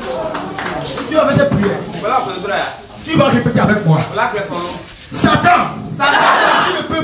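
A man speaks forcefully into a microphone over a loudspeaker in a large echoing space.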